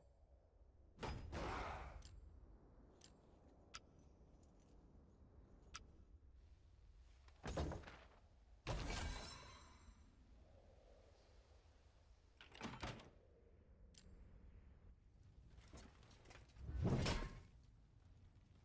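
Short whooshing swells sound as game menus open and close.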